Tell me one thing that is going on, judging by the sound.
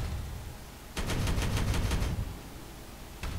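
A heavy gun fires a rapid burst.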